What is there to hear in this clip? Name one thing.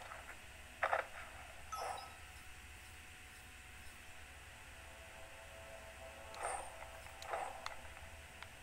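Short electronic menu blips sound.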